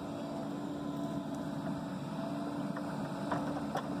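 Dirt pours from a digger bucket into a truck bed.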